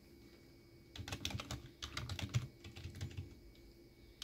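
Keys clack in a quick burst on a keyboard.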